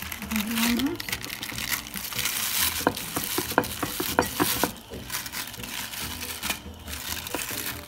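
Plastic sheets crinkle and rustle as hands handle them.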